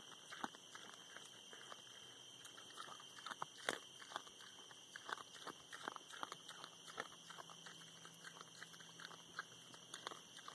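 A pig snuffles and grunts while rooting in feed.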